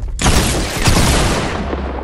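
Gunshots crack rapidly in a video game.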